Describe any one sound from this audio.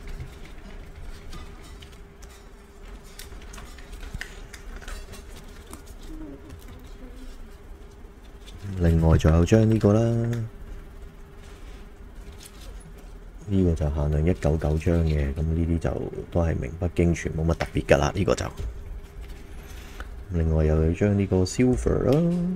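Plastic card cases click and rattle as hands handle them.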